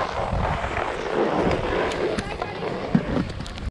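Ski poles click and tap on snow.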